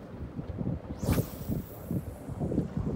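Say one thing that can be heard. A fishing rod swishes through the air as a line is cast.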